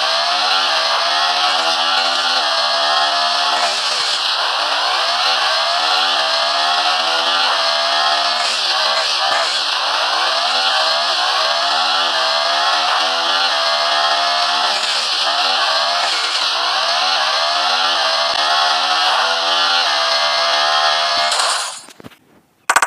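A motorcycle engine revs up and down through its gears.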